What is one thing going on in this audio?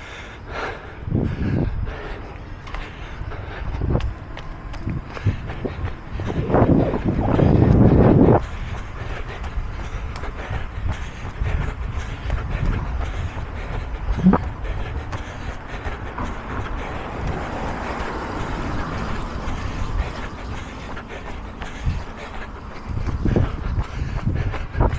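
Wind gusts and rumbles outdoors, buffeting close by in bursts.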